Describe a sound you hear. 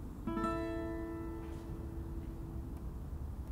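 A guitar chord rings out and slowly fades.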